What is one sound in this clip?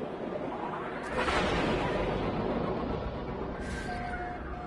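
A spaceship engine surges into a loud rushing roar.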